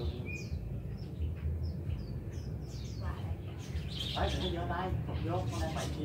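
A songbird chirps and sings nearby.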